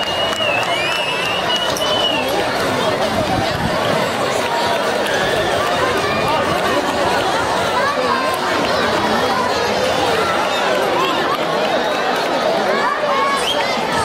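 A crowd of children and adults chatter and shout excitedly all around.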